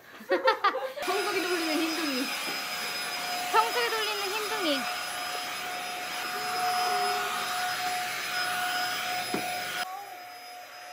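A stick vacuum cleaner runs on a floor.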